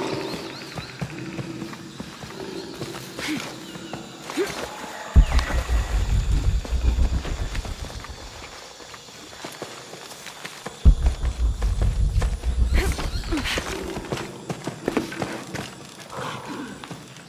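Footsteps crunch quickly over dirt and leaves.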